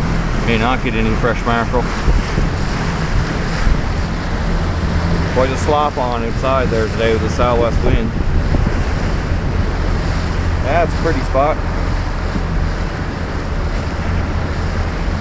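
Choppy water splashes against a boat's hull.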